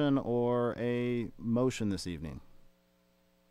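A man reads out steadily through a microphone.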